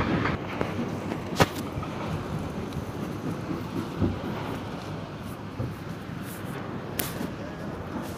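Outdoors, wind rumbles across the microphone.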